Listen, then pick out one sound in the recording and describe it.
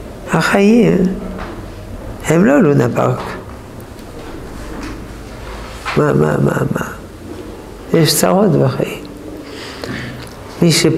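An elderly man speaks calmly and slowly, close by, in short phrases with pauses.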